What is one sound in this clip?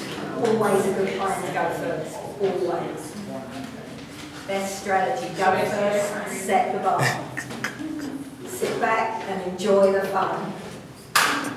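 A young man speaks casually to a group.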